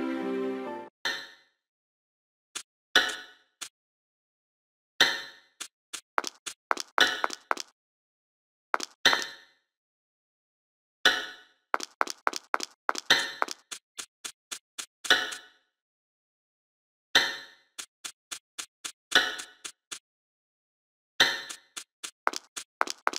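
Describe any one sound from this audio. Footsteps tap along a hard floor in short bursts.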